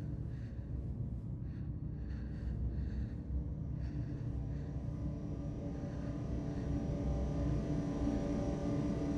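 A heavy machine rumbles low and steadily, with a deep hum.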